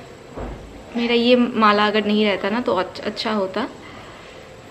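A woman speaks calmly, close by.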